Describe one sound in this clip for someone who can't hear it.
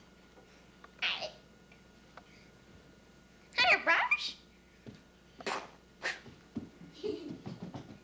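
A young boy shouts and laughs excitedly close by.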